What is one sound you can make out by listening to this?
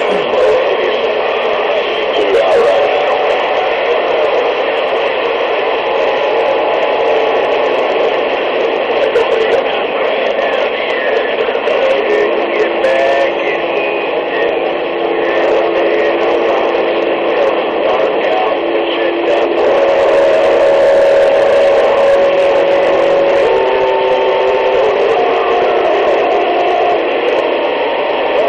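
A radio receiver hisses and crackles with static through a small loudspeaker.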